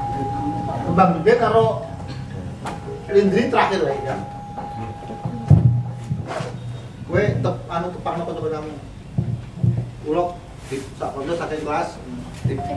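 A man speaks calmly to a small group indoors.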